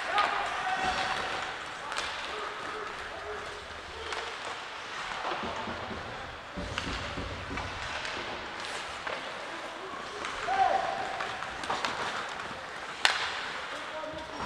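Skate blades scrape and hiss across ice in a large echoing rink.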